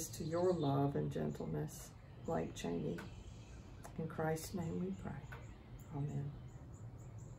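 A middle-aged woman speaks calmly and softly, close by.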